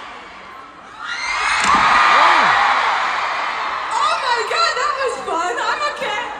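A large crowd screams and cheers loudly.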